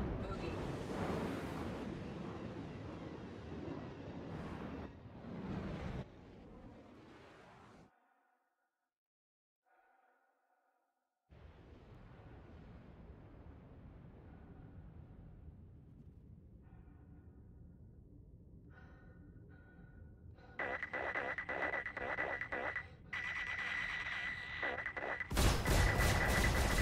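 A video game fighter spacecraft's engines roar.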